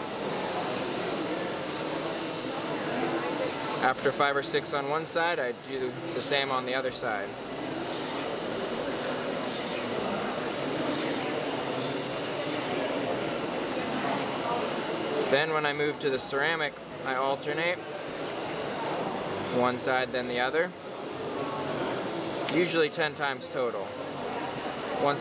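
A knife blade scrapes across a sharpening stone.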